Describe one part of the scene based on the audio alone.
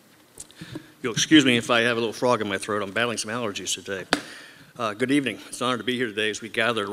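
A man speaks calmly into a microphone, heard over a loudspeaker in an echoing hall.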